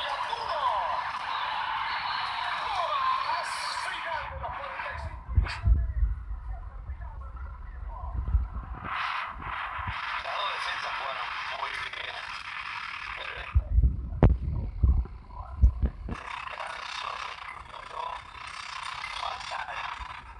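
A crowd cheers from a small tablet speaker.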